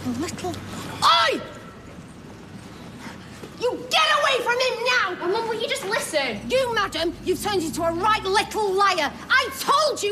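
A woman shouts angrily close by.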